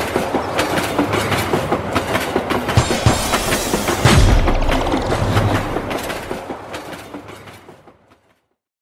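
A train rumbles along the rails with rhythmic clacking wheels, fading into the distance.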